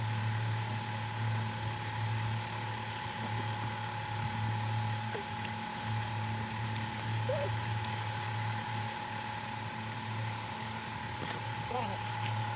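A young boy slurps and chews juicy mango close by.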